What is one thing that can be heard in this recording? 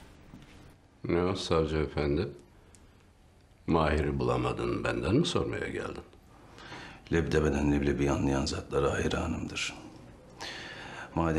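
An elderly man speaks in a low, grave voice, close by.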